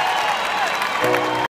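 A piano plays at the end.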